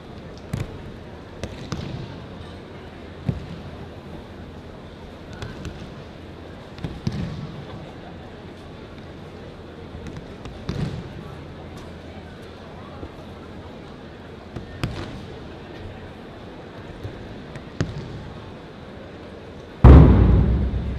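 Bodies thud heavily onto a padded mat, one throw after another.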